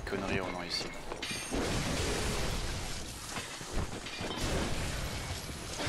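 A heavy blade slashes and strikes flesh with wet thuds.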